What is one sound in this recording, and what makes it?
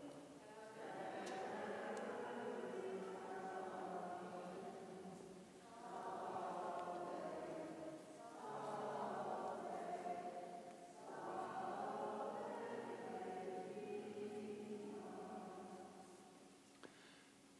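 An elderly man speaks calmly in a large echoing hall.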